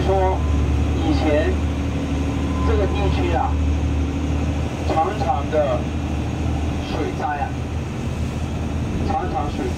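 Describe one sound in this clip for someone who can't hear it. Water rushes against the hull of a moving boat.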